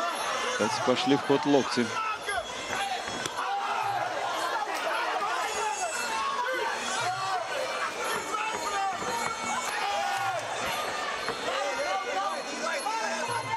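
A crowd cheers and murmurs in a large hall.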